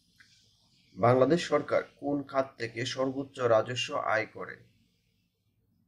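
A man explains calmly, close to a microphone.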